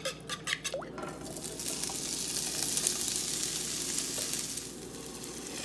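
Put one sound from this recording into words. Sausage pieces sizzle loudly in a hot pan.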